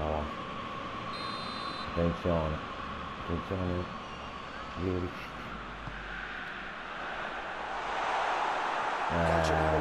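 A large stadium crowd murmurs and then swells into a roar.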